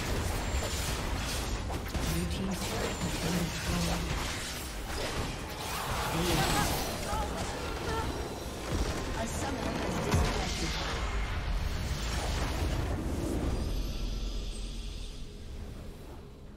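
Game battle effects clash and whoosh with magic blasts.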